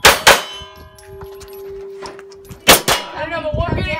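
Pistol shots crack loudly, one after another.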